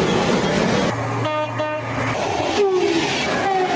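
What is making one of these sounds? A passenger train passes at speed.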